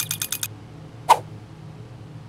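A bright electronic chime sounds once as a reward pops up.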